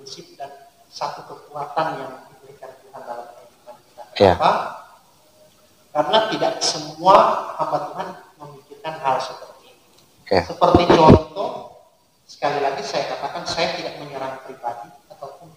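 A second man talks conversationally nearby.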